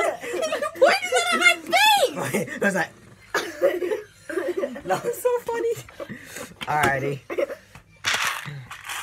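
A boy laughs and shouts close by.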